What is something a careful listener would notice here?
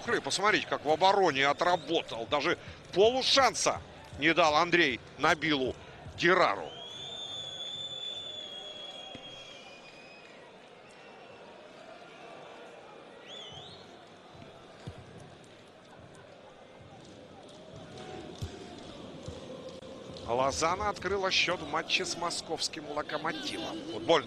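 A stadium crowd murmurs and chants steadily in the distance.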